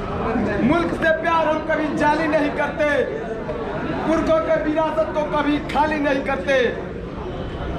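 A young man speaks loudly and with animation to a crowd outdoors.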